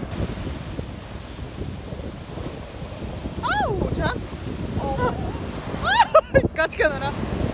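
Waves crash and wash up onto the shore with a steady rushing hiss.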